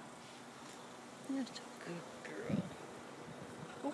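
A hand strokes a cat's fur with a soft rustle.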